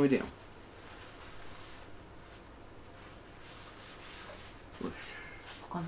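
Paper rustles as a young man folds it.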